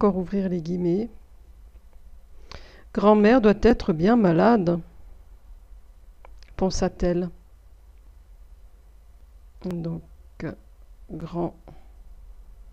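A woman speaks slowly and clearly into a close microphone, pausing between phrases.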